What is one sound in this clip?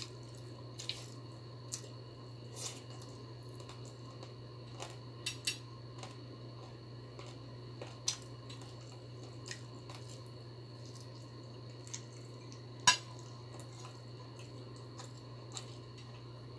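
Fingers squish and scrape through rice on a plate.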